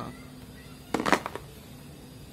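A cable drops onto a plastic headset with a soft clatter.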